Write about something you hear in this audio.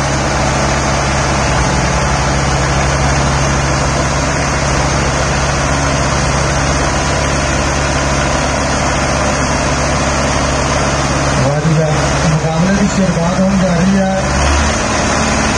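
Two diesel farm tractors strain under heavy load in a tug of war.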